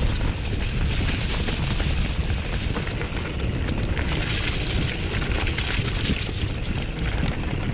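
Bicycle tyres crunch and rattle over dry leaves and dirt.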